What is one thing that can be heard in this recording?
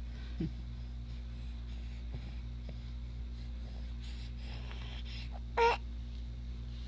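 A baby makes a short, soft cooing sound close by.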